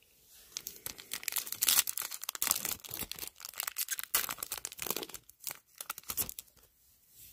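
A foil card pack crinkles and rustles close by.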